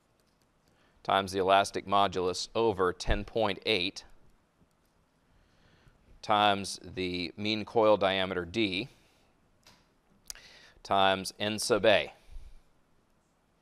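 A man explains calmly into a close microphone, in short phrases with pauses.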